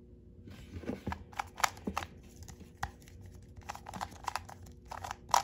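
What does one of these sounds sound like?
The plastic pieces of a puzzle cube click and clatter as it is quickly twisted.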